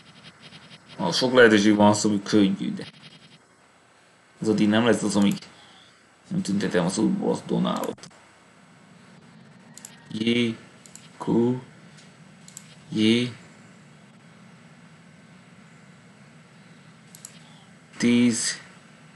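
A man talks calmly into a microphone in short bursts.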